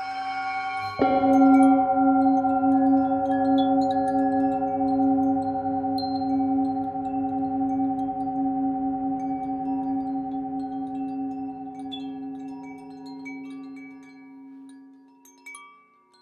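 A singing bowl is struck and rings out, slowly fading.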